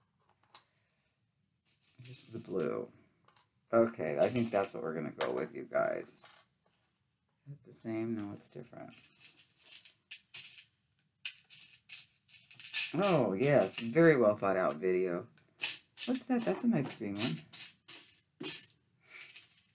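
Small beads rattle and click in a plastic tray.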